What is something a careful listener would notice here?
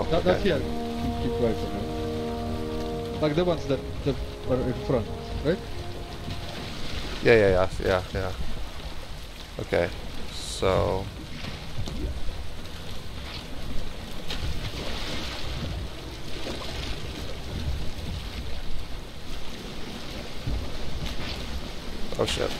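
Water splashes softly with wading steps.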